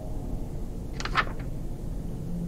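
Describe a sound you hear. A page flips with a quick rustle.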